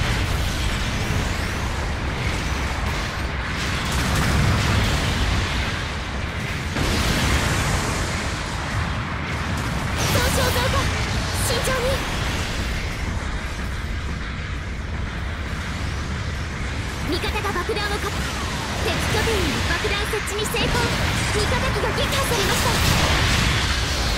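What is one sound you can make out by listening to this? Heavy gunfire and explosions boom and crackle throughout.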